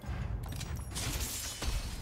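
A bright magical whoosh bursts out.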